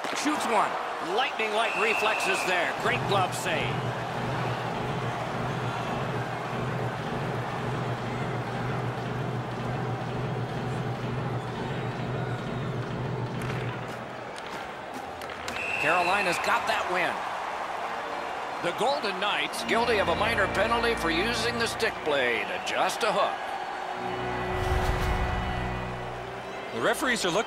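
A large arena crowd murmurs and cheers throughout.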